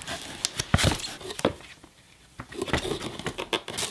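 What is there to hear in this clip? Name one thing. Paper rustles as a leaflet is lifted out.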